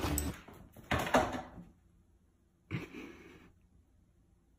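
A dog yowls loudly in short bursts nearby.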